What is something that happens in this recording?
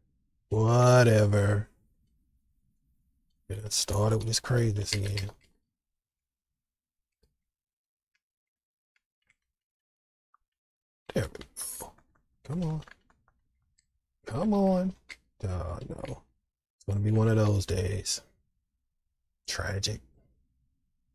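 A middle-aged man talks with animation into a close microphone, in short bursts with pauses.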